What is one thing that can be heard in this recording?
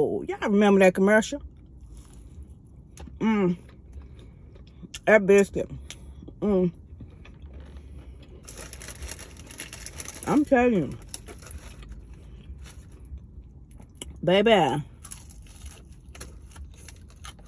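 A woman chews and crunches food.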